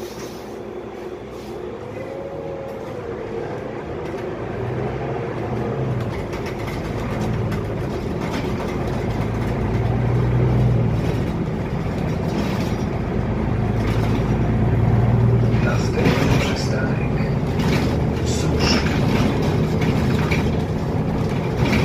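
A city bus drives along, its engine and road noise droning, heard from inside the passenger cabin.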